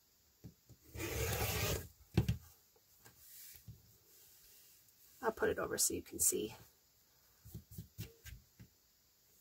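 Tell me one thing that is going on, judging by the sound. A rotary blade rolls and crunches through fabric.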